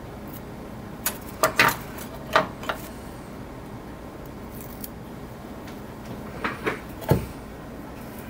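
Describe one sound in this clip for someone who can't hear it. Small knocks and taps sound as a hand presses on a hard plastic surface.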